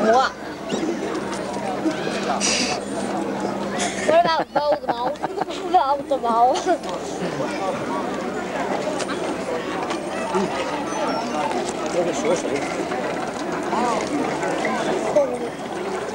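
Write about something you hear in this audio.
Many people chatter in the background outdoors.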